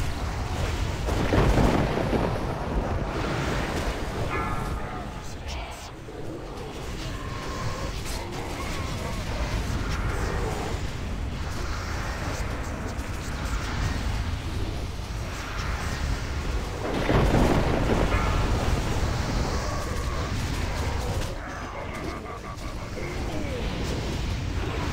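Magic spells crackle and burst in a noisy battle.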